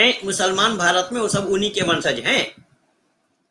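An elderly man speaks with animation close to a microphone.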